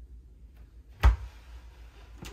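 A small fridge door shuts with a firm thump.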